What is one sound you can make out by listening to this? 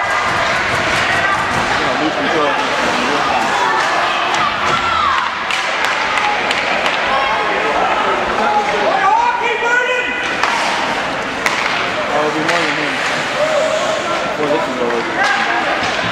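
Men shout to each other across the rink.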